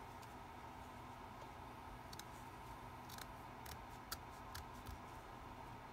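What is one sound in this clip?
Scissors snip through cloth.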